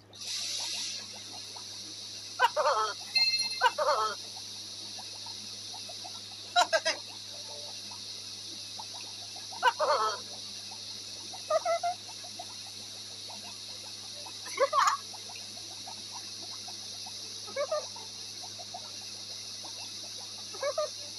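Water sprays steadily from a shower head.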